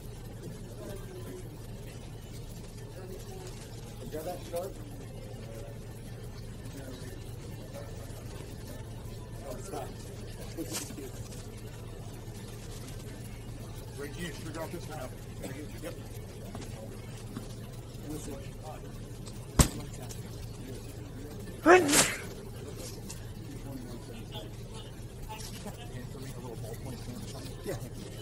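A crowd of people murmurs and talks in the distance.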